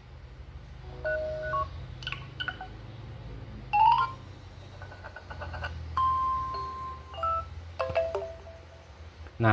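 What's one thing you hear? A phone plays short ringtone previews one after another.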